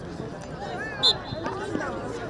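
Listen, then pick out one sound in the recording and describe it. A referee's whistle blows a short blast.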